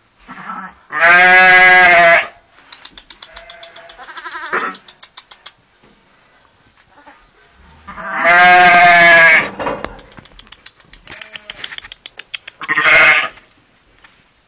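A lamb bleats loudly close by.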